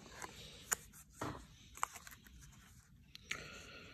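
Plastic card sleeves crinkle as a binder page is turned.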